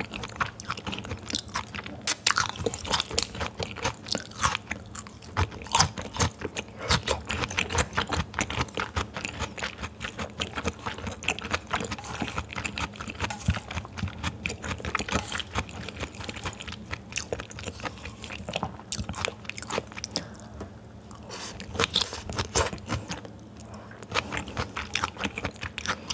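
A young woman chews raw beef close to a microphone, with wet smacking sounds.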